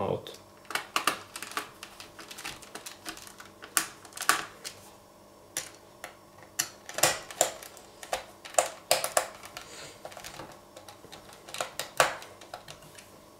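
Fingers tap and click on hard plastic and metal parts close by.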